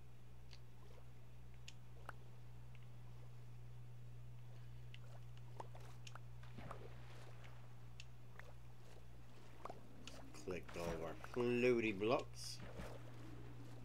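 Water splashes and bubbles softly.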